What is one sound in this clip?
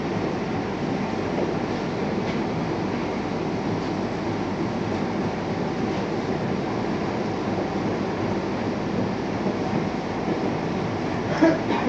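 A cutting machine hums steadily with a fast crackling buzz.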